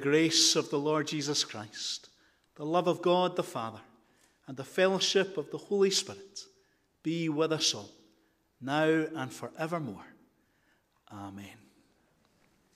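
A man speaks through a microphone, with a slight echo in a large room.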